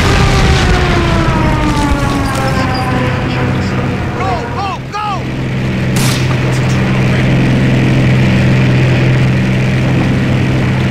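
Vehicle engines rumble steadily.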